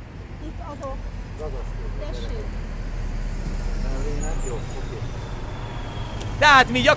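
Several men talk nearby outdoors.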